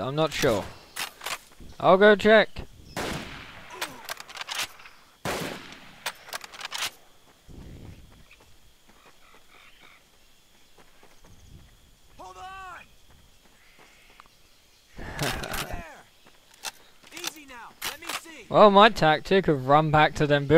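A rifle fires sharp single shots.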